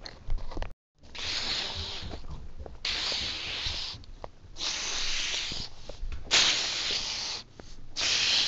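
Plastic toy packaging rustles and crinkles as a hand handles it.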